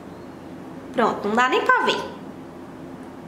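A young woman speaks briefly and close by.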